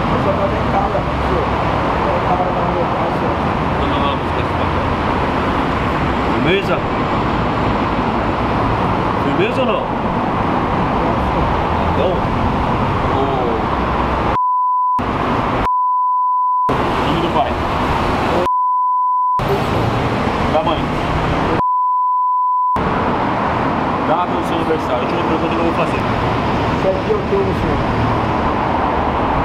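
A man asks questions in a calm, firm voice close by.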